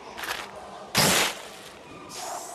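A heap of garbage lands with a wet splat.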